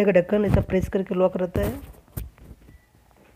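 A plastic cover clicks as it is pulled off.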